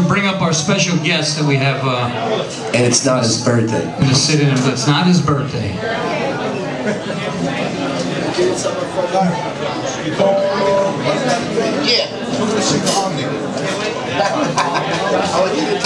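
A bass guitar plays a low line.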